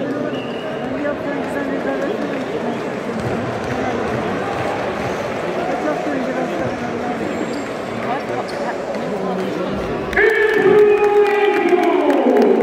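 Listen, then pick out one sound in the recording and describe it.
A large crowd chants and cheers loudly in a big echoing arena.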